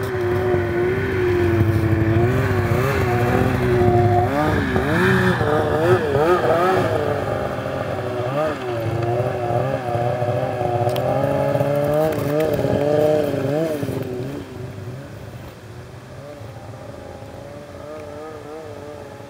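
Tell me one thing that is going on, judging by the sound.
A snowmobile engine revs loudly up close, then drones away into the distance and fades.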